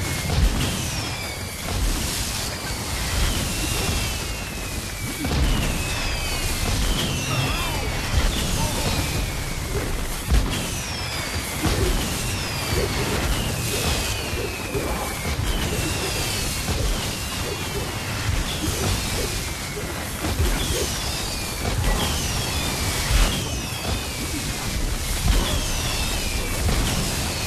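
Magic blasts crackle and boom in rapid bursts.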